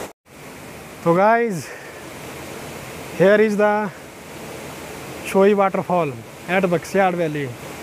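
A man speaks close to the microphone over rushing water.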